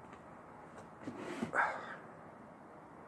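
A young man sighs into his hand.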